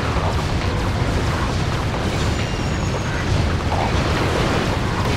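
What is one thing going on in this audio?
Energy weapons fire in rapid crackling bursts.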